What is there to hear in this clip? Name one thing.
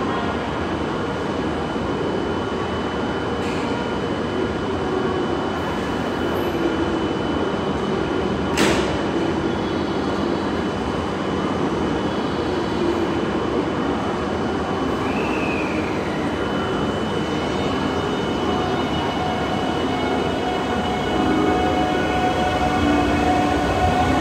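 A train rumbles slowly into an indoor station, growing louder as it draws near.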